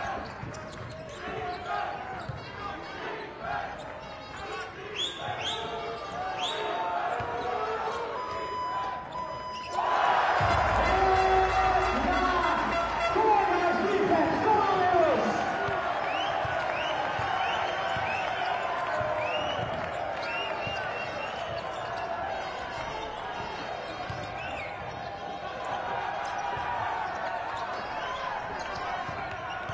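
A large indoor crowd murmurs and cheers, swelling loudly for a while.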